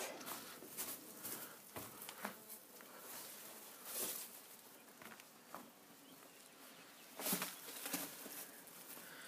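Footsteps crunch on loose stones close by.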